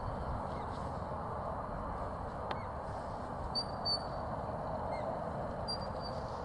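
Wind blows steadily across an open field.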